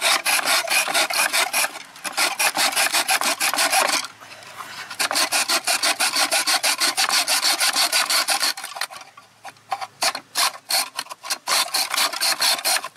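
A hacksaw cuts through a metal rod with quick, rasping strokes.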